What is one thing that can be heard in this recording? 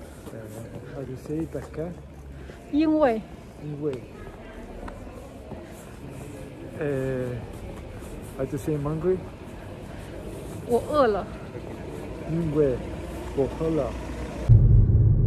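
A man answers calmly close by.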